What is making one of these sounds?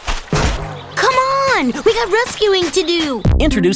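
Another small cartoon creature cries out excitedly in a high voice.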